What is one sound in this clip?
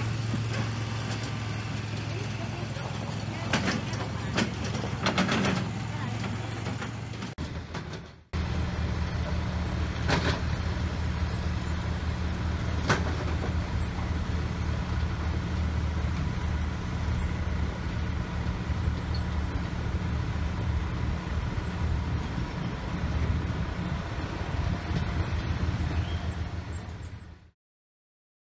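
A small utility vehicle's engine hums steadily as it drives over grass.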